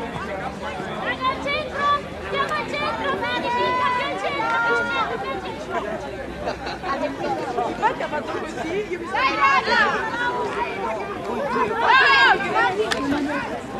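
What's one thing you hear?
Young women shout and call out across an open field.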